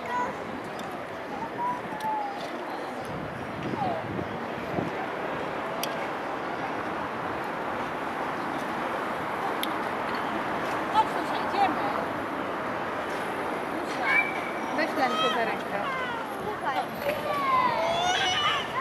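Adults and children chatter faintly in the distance outdoors.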